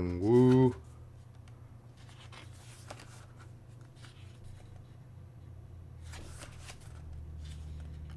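Paper pages rustle and flip softly.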